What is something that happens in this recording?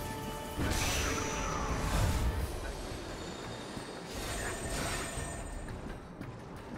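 A character thuds onto the ground.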